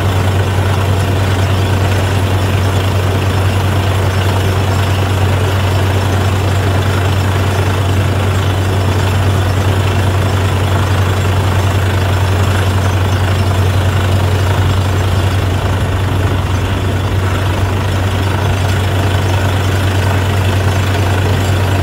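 A truck-mounted drilling rig's engine roars loudly and steadily.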